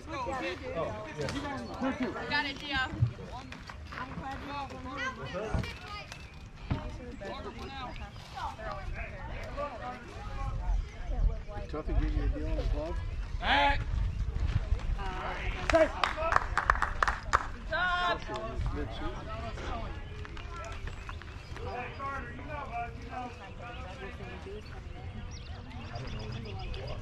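Children and adults chatter and call out nearby outdoors.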